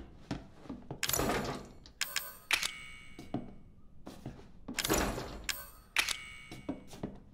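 A locked metal door rattles and clanks as its handle is tried.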